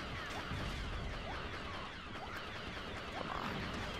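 Laser blasters fire in quick bursts.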